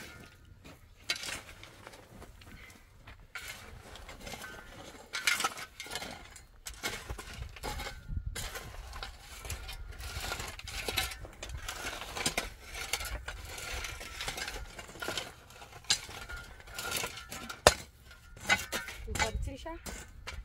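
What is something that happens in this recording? Metal hoes scrape and drag across dry earth.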